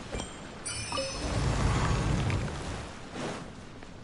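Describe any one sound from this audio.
A bright magical burst whooshes and swells loudly.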